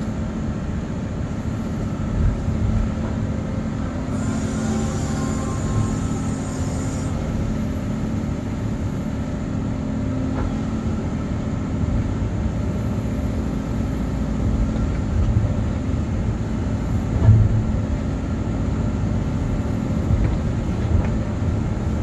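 A diesel engine rumbles steadily close by, heard from inside the cab.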